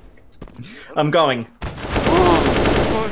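A pistol fires several quick shots.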